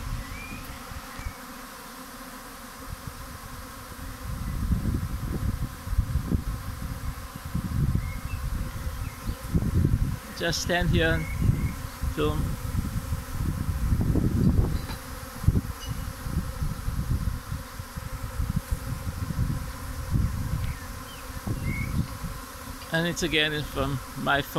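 A swarm of bees buzzes all around.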